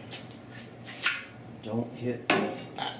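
A hammer strikes metal with sharp ringing blows.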